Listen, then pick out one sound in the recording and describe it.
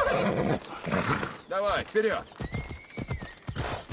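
Hooves thud in a gallop.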